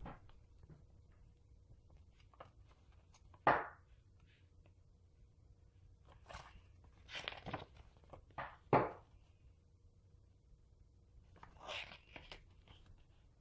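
Paper cards rustle and crinkle as they are handled close by.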